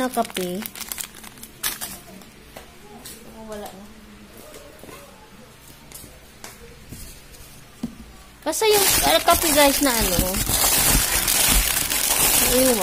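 Plastic snack wrappers rustle and crinkle as a hand rummages through them.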